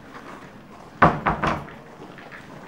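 Knuckles knock loudly on a wooden door.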